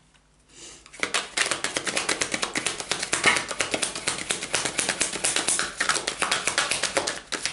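A deck of cards is shuffled quickly with rapid, crisp flutters.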